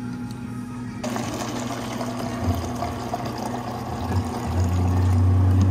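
Water pours into a cup of ice.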